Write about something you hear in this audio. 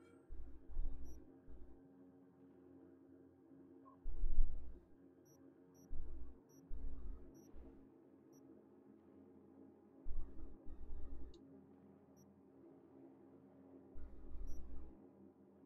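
Soft electronic blips sound as menu options are selected.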